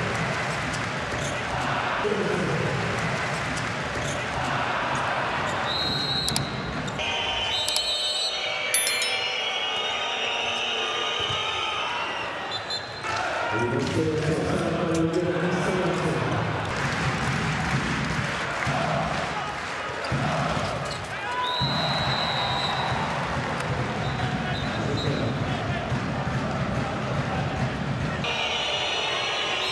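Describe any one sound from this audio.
A large crowd cheers and chants in a big echoing hall.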